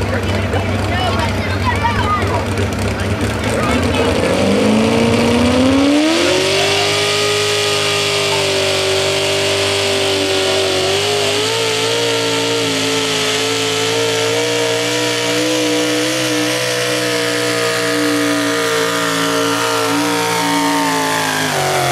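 A pulling truck's engine roars loudly and revs up, then holds a high, steady whine.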